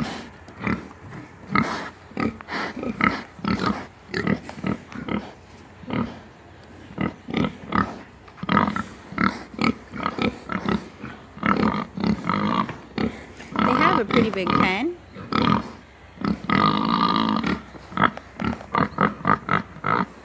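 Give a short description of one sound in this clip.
Pigs grunt close by.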